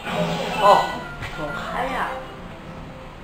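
A short electronic game jingle plays through a television speaker.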